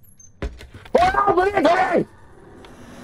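A young man exclaims loudly in alarm.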